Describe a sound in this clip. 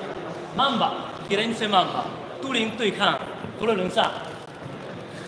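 A man speaks loudly and with animation close by, in an echoing hall.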